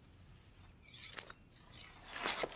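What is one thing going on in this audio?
A knife scrapes as it slides out of a leather sheath.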